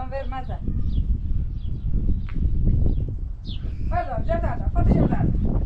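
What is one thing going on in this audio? A young girl speaks in a high voice nearby.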